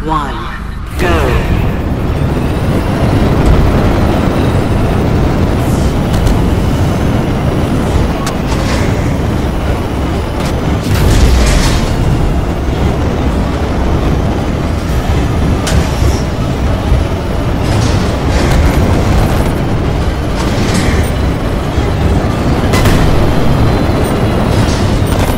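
Futuristic racing engines roar and whoosh at high speed.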